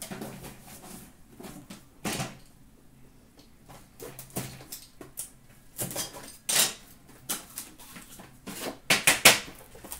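Cardboard boxes rustle and knock as they are handled.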